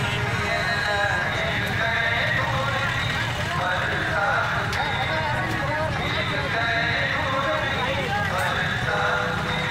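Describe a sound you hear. Motorbike engines idle and rumble steadily.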